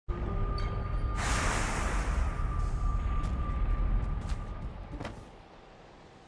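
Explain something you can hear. A deep magical whoosh roars loudly and slowly fades.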